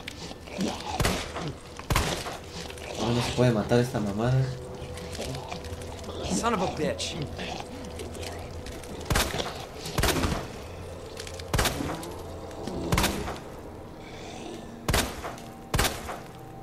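Gunshots ring out one at a time.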